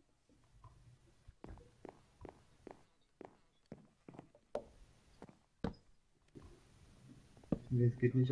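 Short wooden knocks sound as blocks are placed one after another.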